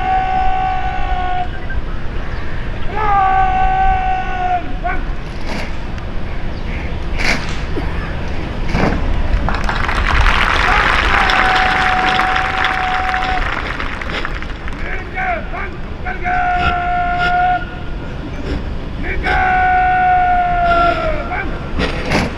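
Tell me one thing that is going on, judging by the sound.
A man shouts long drawn-out drill commands loudly outdoors.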